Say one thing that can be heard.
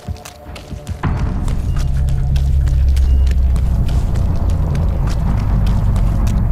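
Quick footsteps run over rough ground.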